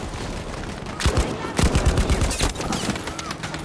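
Rifle shots crack loudly in short bursts.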